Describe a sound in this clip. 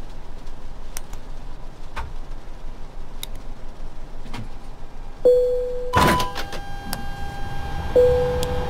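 Cockpit switches click on an airliner's overhead panel.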